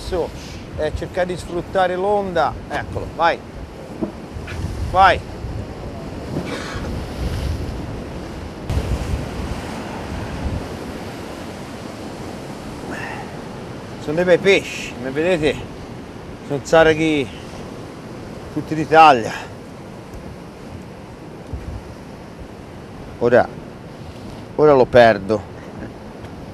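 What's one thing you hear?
A man talks nearby in bursts.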